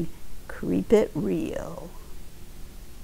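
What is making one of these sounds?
An older woman speaks with animation, close to a microphone.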